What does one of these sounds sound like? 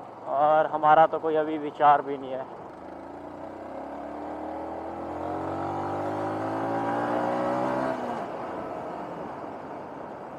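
A motorcycle engine hums steadily and rises in pitch as it speeds up.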